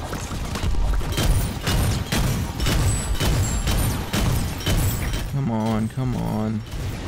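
Game explosions and magical bursts crackle and boom.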